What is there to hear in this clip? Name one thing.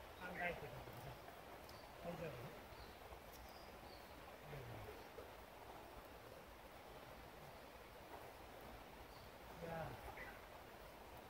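Men talk quietly in the distance outdoors.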